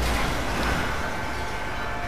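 Cars crash together with a metallic bang.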